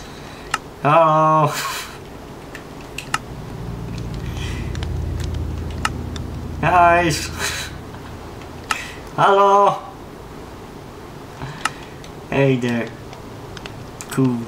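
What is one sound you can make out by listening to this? A young man lets out short, loud, high-pitched vocal bursts close to a microphone.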